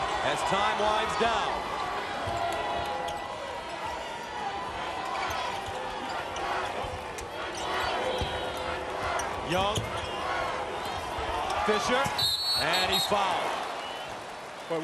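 A large crowd murmurs and cheers in an echoing arena.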